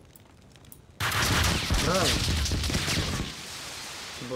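Gunshots and a loud blast ring out.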